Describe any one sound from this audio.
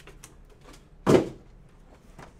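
Packs thump down onto a table.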